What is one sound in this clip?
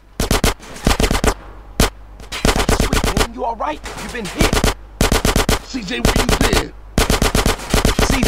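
Guns fire in rapid bursts close by.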